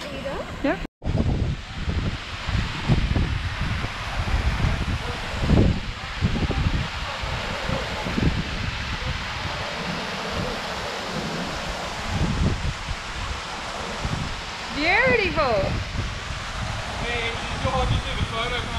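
A waterfall splashes steadily into water nearby.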